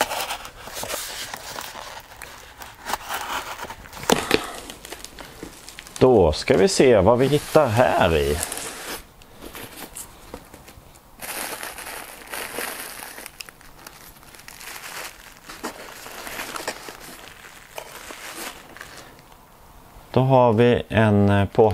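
Cardboard and paper rustle and crinkle as a box is unpacked.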